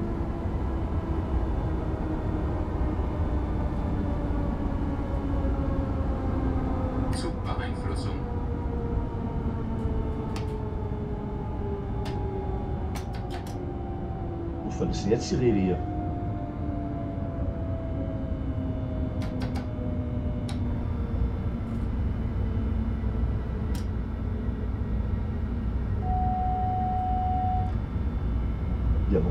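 An electric train's motors hum with a slowly falling whine.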